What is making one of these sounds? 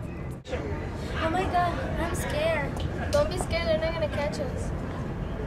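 A young woman speaks close by with animation.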